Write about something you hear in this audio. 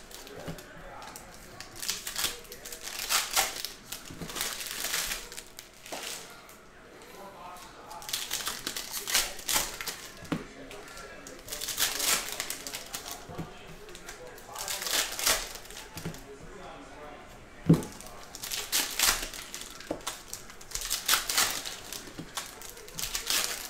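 Foil card packs crinkle and rustle as they are torn open.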